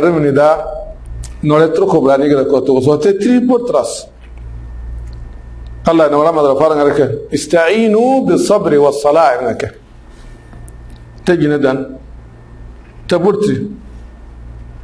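A man speaks calmly and slowly into a close microphone, with long pauses.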